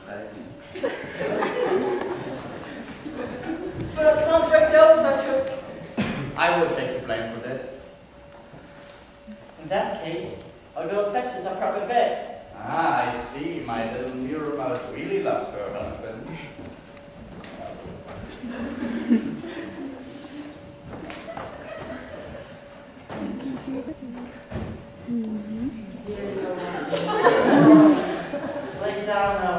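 A young man speaks with animation in a hall.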